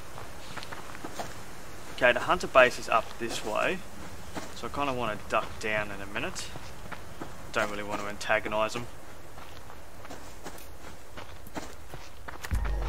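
Footsteps swish through grass at a walking pace.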